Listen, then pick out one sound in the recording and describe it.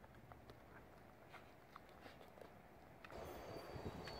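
A dog pants close by.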